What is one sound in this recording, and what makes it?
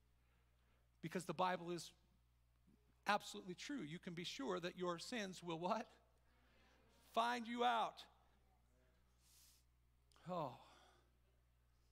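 A middle-aged man speaks with animation through a microphone in a large room, pausing between phrases.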